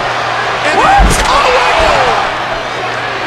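A body thuds heavily onto the floor.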